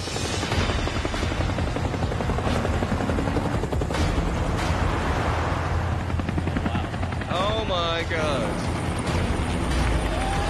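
Helicopter rotors thud loudly overhead.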